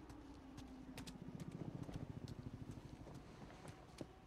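Footsteps walk slowly on hard ground.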